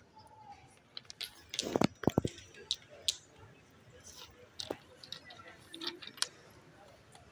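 Small stones click and knock together as children handle them.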